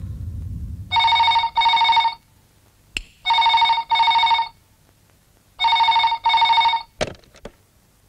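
A telephone rings loudly in repeated bursts.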